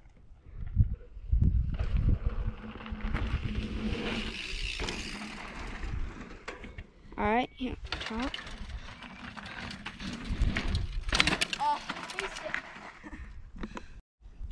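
Bicycle tyres crunch and roll over a dry dirt trail.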